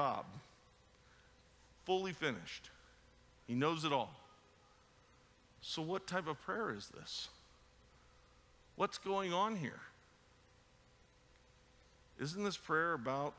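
A man speaks with animation through a microphone and loudspeakers, in bursts with pauses, in a large echoing hall.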